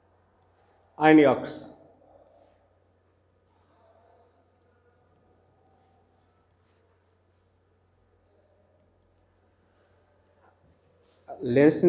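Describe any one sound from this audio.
A man speaks briefly and calmly into a nearby microphone.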